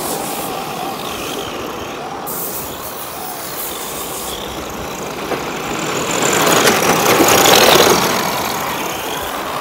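Small electric motors whine as toy cars race.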